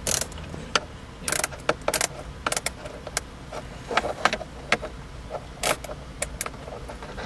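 Plastic parts click and rattle under working hands.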